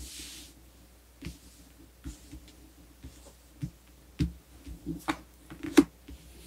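Cards slide and tap softly as they are laid out.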